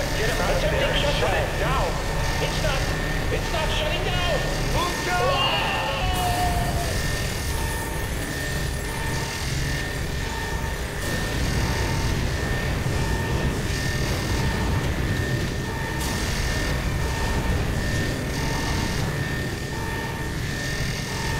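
A deep machine hum drones steadily.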